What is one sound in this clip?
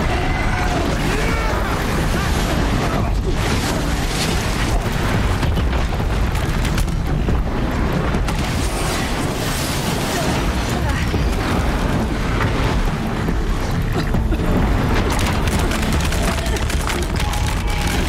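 Weapons fire in rapid bursts.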